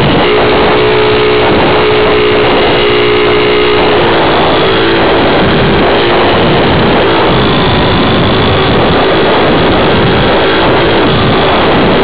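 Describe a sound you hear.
Small electric propeller motors whine loudly and steadily, close by.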